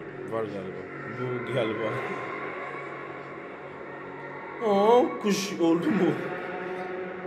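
Young men talk and react with animation close by.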